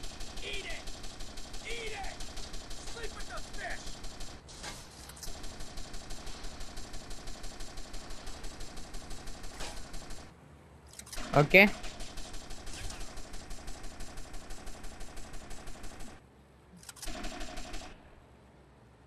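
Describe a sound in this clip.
A speedboat engine drones.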